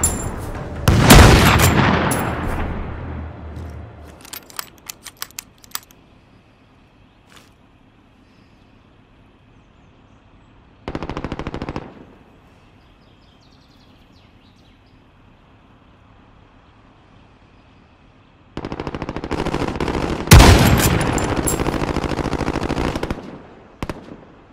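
A rifle fires with a loud bang that echoes away.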